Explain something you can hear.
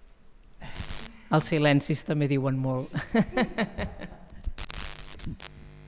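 A second woman answers into a microphone, close by.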